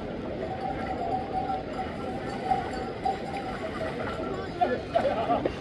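Goat hooves clatter on a wooden raft.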